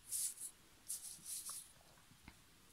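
A pencil scratches across paper in short strokes.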